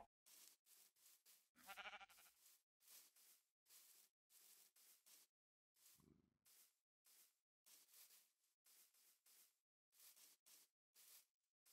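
Footsteps rustle through grass at a steady walking pace.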